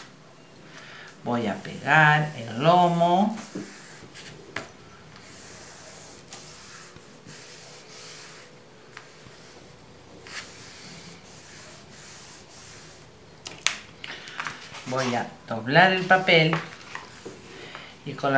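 Paper rustles softly under hands.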